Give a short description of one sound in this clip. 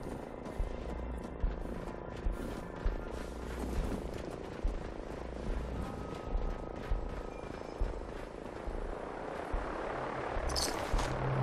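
Footsteps thud steadily on dirt and wooden boards.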